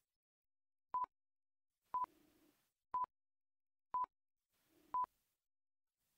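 A countdown timer beeps five times, once a second.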